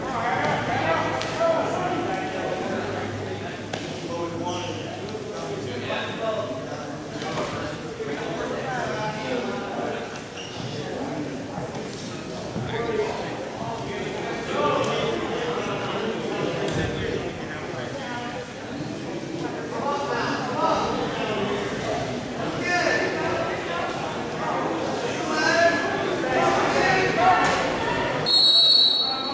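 A crowd of spectators talks and calls out in a large echoing gym.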